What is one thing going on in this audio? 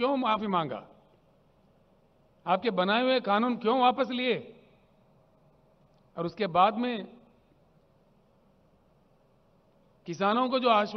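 An older man speaks slowly into a microphone, with long pauses, over a loudspeaker.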